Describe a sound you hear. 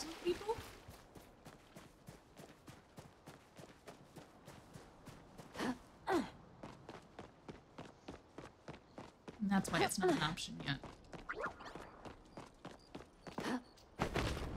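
Light footsteps tap quickly and evenly.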